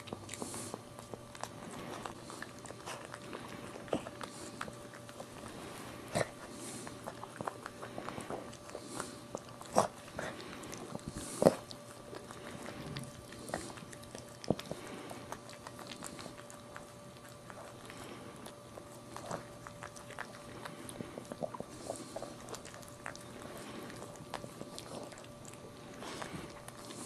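A dog licks newborn puppies with soft wet smacking sounds, close by.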